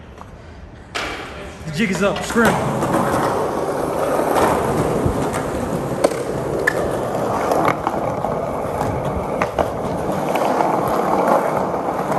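Skateboard wheels roll and rumble over a hard floor.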